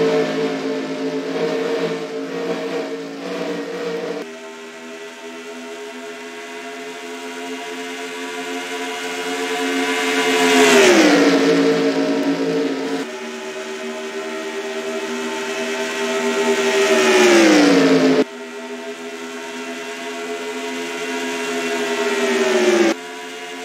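Race car engines roar loudly and steadily.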